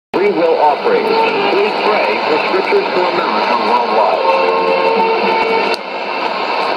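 A radio plays a faint, wavering broadcast through static.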